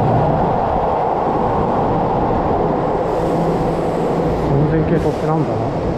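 A second train approaches with a low rumble.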